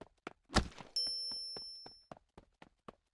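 A bright electronic chime rings and fades.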